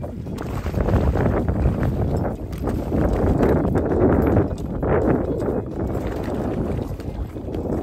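Water splashes against a small boat.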